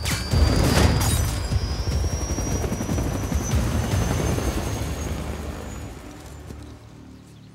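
A helicopter crashes with a loud roar.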